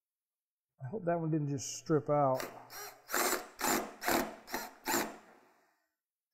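A cordless impact driver rattles in short bursts.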